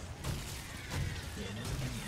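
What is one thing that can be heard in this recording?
Fire bursts with a whoosh.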